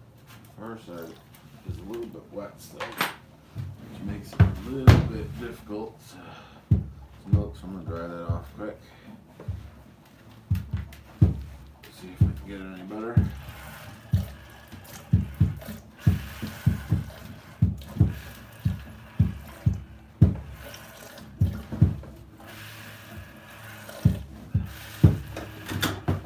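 Milk squirts in quick rhythmic spurts into a plastic container.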